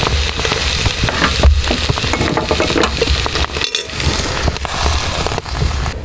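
A metal pot clanks against a grill.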